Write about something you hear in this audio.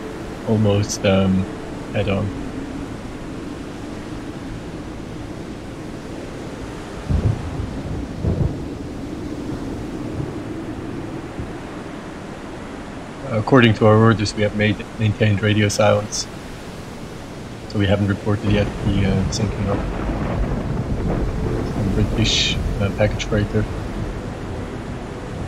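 Rough sea waves churn and roll steadily.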